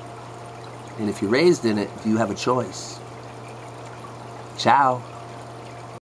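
A middle-aged man speaks calmly and close to a microphone, in short bursts.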